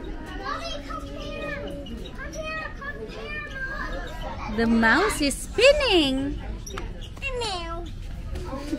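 A young child talks and squeals excitedly close by.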